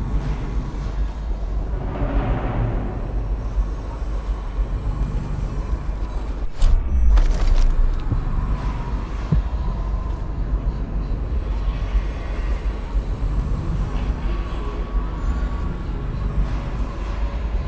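Footsteps clang on a metal grating.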